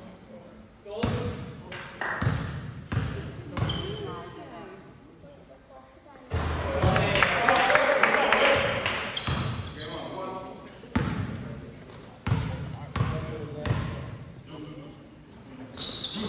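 A basketball bounces on the court with dull thumps.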